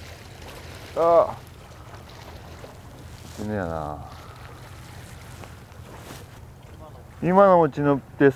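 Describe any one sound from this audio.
A man speaks in short bursts close by.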